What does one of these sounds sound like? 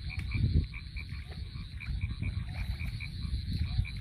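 Hands splash and stir in shallow water.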